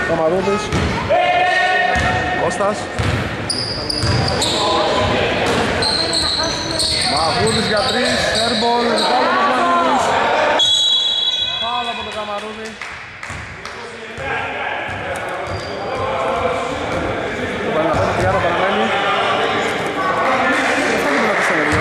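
A basketball bounces on a hard wooden floor in an echoing hall.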